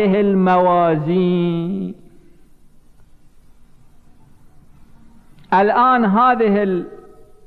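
An elderly man chants in a sustained, melodic voice through a microphone, echoing in a large hall.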